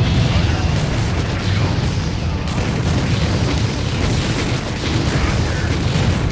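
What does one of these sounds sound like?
Explosions boom in a noisy battle.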